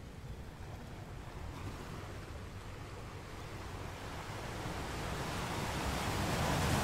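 Ocean waves crash against rocks and wash back, growing louder.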